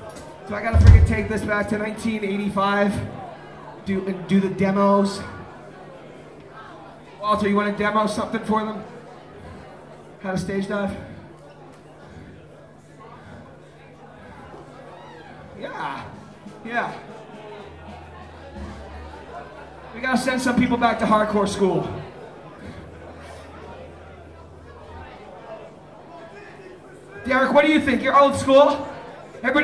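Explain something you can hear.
A man speaks loudly through a microphone and loudspeakers in a large echoing hall.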